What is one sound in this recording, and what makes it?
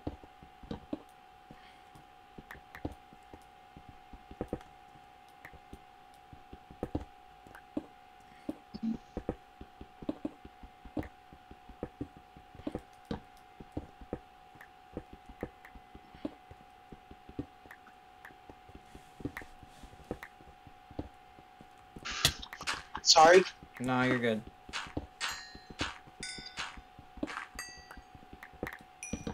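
A pickaxe taps on stone.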